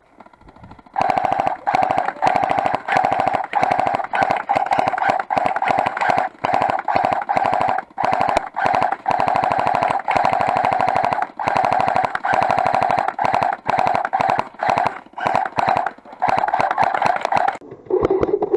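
An airsoft gun fires long rapid bursts close by.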